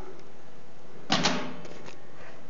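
A hand knocks on a metal cabinet door.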